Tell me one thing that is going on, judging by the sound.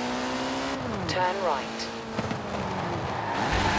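Car tyres screech as the car slides through a turn.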